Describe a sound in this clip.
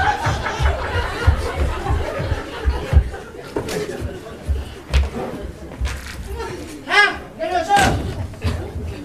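A door shuts.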